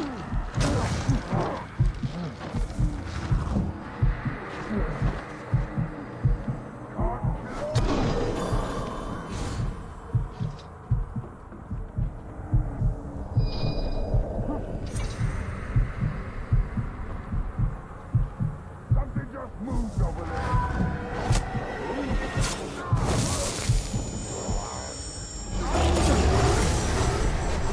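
Heavy footsteps thud quickly over the ground.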